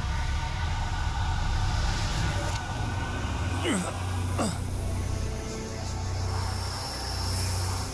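A man groans and speaks in a strained, pained voice.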